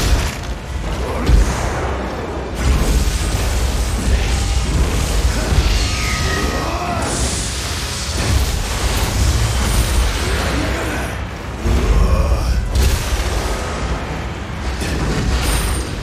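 Monsters growl and groan.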